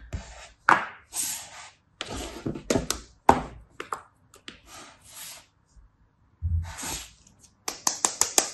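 Plastic toy moulds clack and rattle against each other on a hard surface.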